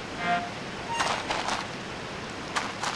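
Light footsteps patter across soft ground.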